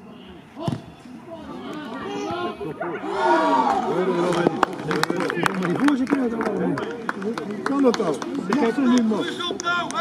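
Young men shout and cheer excitedly outdoors at a distance.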